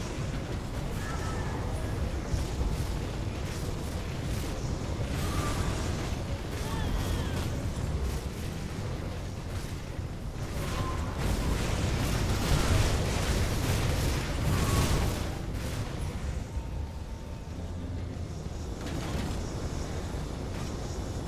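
Fiery spell blasts crackle and boom rapidly over and over.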